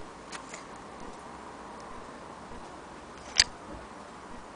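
A small metal tool clicks and clatters as a hand handles it.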